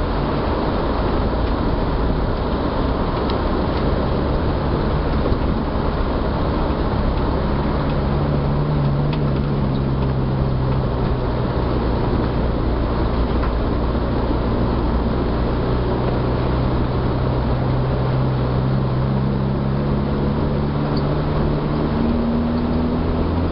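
Tyres rumble over a rough lane.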